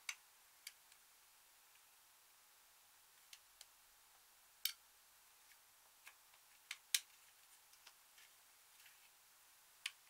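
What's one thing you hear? A metal tool scrapes and taps against a plastic compact.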